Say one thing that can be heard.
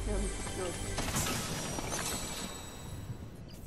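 A bright chime rings out.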